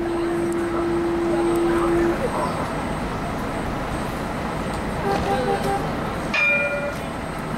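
A tram hums steadily.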